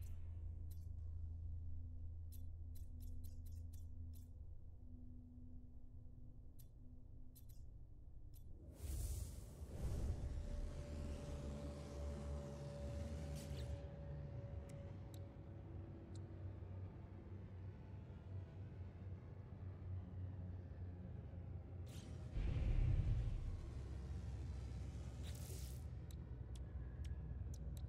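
Short electronic clicks sound as menu items are selected.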